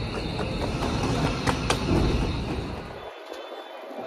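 A subway train rumbles along beside a platform.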